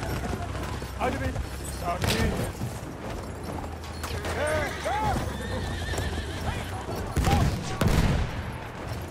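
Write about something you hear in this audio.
Gunshots and explosions boom in the distance.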